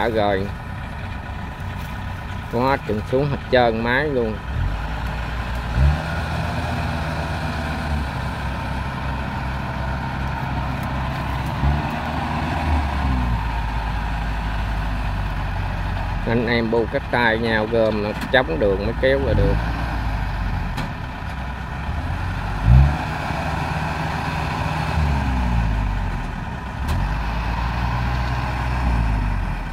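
A combine harvester engine rumbles steadily close by.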